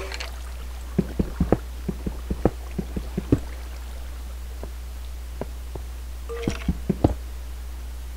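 A pickaxe chips at stone with quick, sharp knocks.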